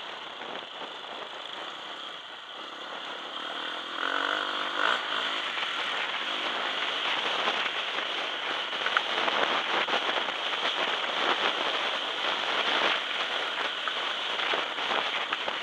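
A dirt bike engine revs and roars up close.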